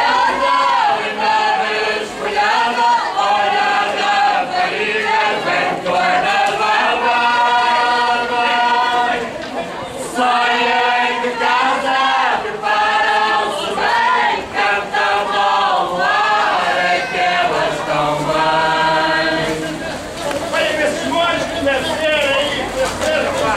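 A group of men and women sing together in a folk chorus outdoors.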